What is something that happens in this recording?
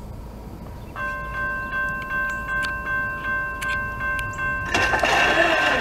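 A freight train's horn blares in long, pulsing blasts.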